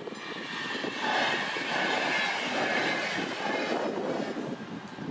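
A train rushes past at close range with a loud roar.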